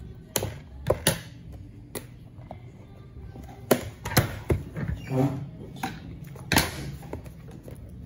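Cardboard boxes knock and tap against a wooden table.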